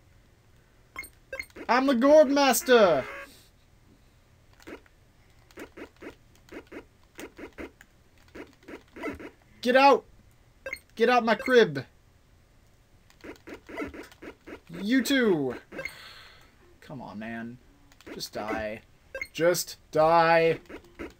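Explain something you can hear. Quick electronic blips tick as a game character moves.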